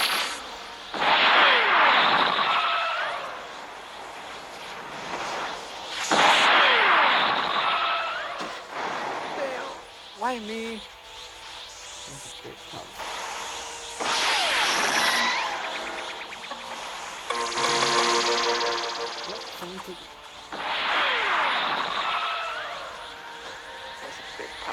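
Energy beams blast with a loud rushing whoosh in repeated bursts.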